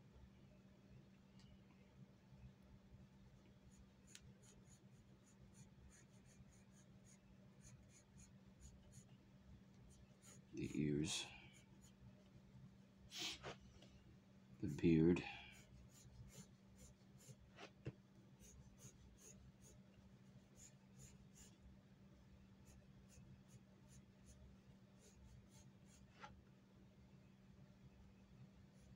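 A pencil scratches softly across paper in quick strokes.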